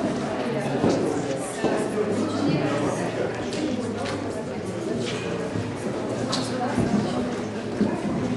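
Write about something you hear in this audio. A crowd of men and women chatter in an echoing hall.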